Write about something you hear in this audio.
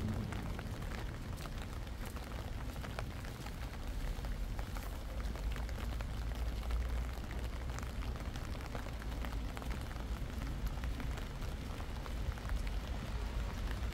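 Rain patters steadily on wet pavement outdoors.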